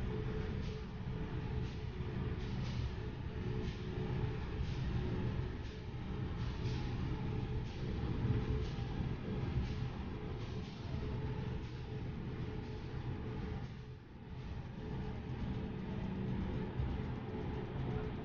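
Jet engines hum steadily at low idle.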